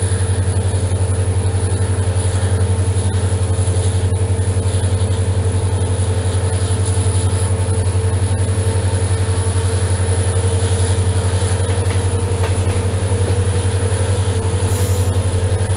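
Train wheels clatter rhythmically over the rails.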